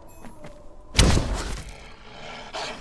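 A sword swings through the air with a whoosh.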